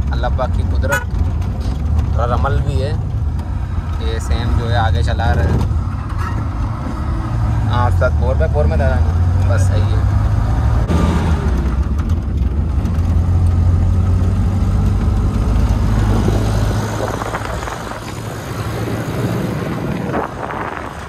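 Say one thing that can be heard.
A vehicle engine rumbles steadily while driving over a rough road.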